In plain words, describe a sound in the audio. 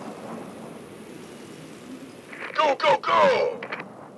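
Rapid gunfire rattles in a skirmish.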